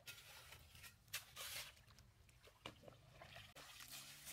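Hands splash in shallow water.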